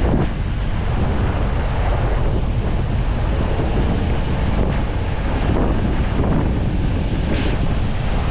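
A vehicle's tyres rumble steadily on a paved road.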